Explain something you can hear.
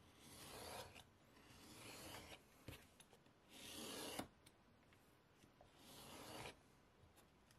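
A blade scrapes and slices through leather in short rasping strokes.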